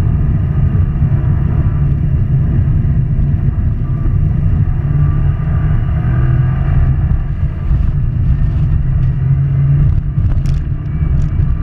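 Studded tyres rumble over ice.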